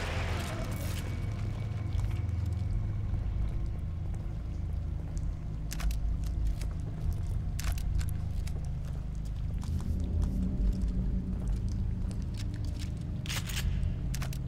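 Footsteps crunch slowly over stone and debris.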